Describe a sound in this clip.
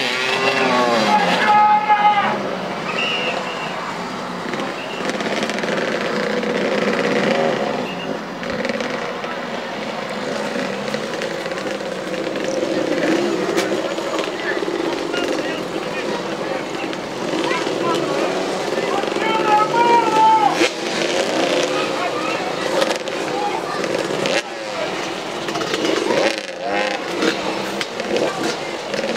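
Motorcycle engines rev and buzz nearby outdoors.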